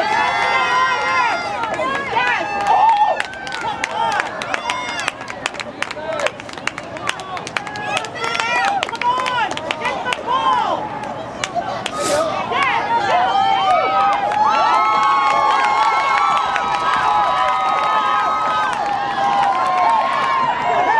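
Lacrosse players shout across an outdoor field.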